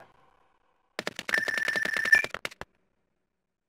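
Rapid electronic beeps tick quickly as points are counted.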